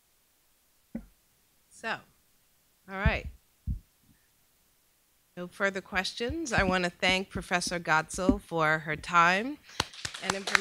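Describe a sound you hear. A second woman speaks calmly into a microphone.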